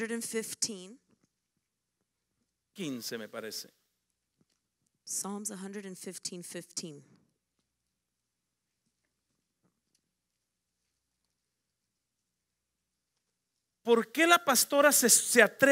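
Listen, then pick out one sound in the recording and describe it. A woman speaks through a microphone in short bursts.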